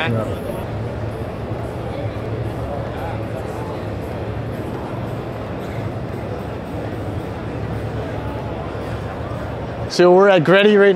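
A large crowd murmurs and chatters in a big echoing hall.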